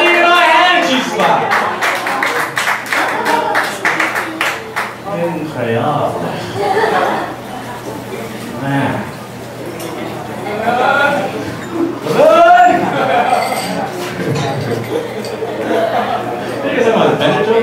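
A man talks animatedly into a microphone through loudspeakers in an echoing room.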